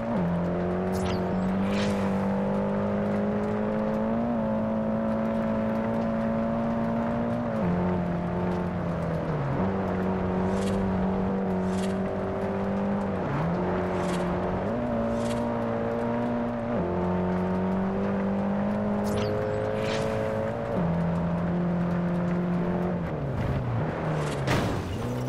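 Tyres screech in short bursts while the car drifts.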